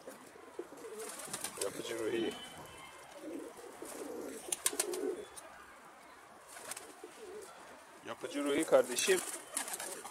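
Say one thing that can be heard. A pigeon's wings flap and clatter.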